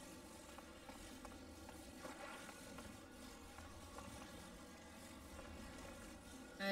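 A soft electronic hum drones steadily.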